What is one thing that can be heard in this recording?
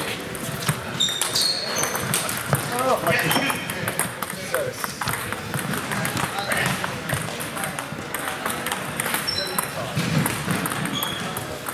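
Sneakers squeak on a hard floor in an echoing hall.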